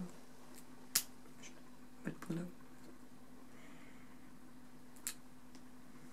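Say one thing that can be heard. Small clippers snip sharply at a rabbit's claws.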